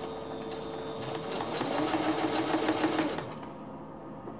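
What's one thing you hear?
A sewing machine runs with a fast, steady whirring hum.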